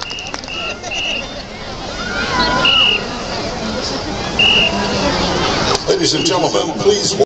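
A crowd murmurs and chatters outdoors in a large stadium.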